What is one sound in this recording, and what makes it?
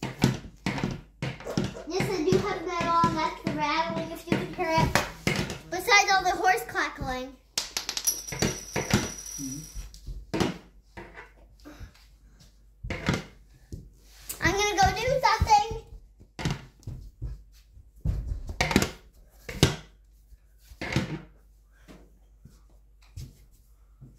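Toy figures knock and tap on a wooden floor.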